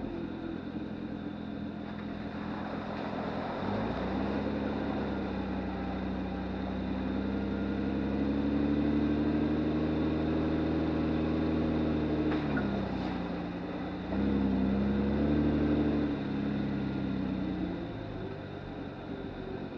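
Tyres splash through muddy puddles.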